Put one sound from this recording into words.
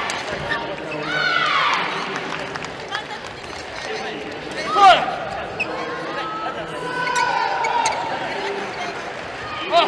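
Shoes squeak sharply on a gym floor.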